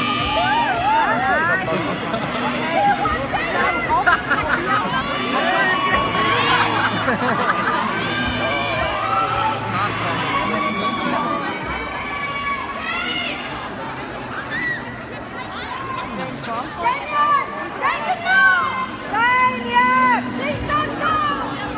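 A woman close by shouts with excitement.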